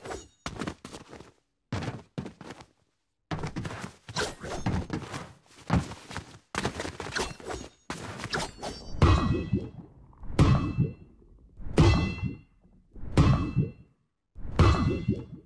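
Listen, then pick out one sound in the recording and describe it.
Footsteps clank on hollow metal pipes.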